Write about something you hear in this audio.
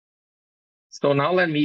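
A man speaks calmly through a microphone in an online call.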